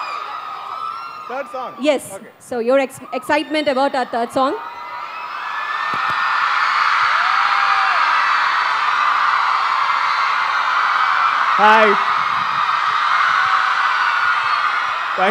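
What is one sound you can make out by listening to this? A young man speaks cheerfully through a microphone.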